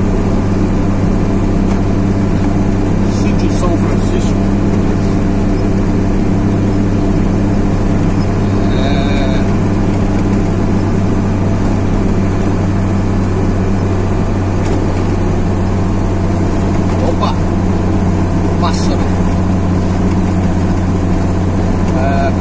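A vehicle engine hums steadily while driving along a road.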